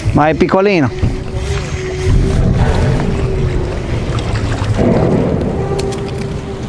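A fish splashes and thrashes at the water's surface close by.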